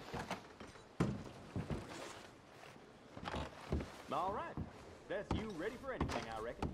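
Boots thump on a wooden floor as a man walks.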